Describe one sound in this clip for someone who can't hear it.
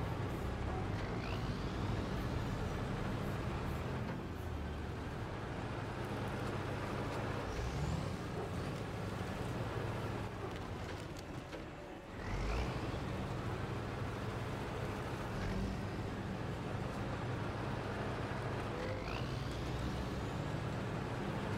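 Tyres crunch over rough ground.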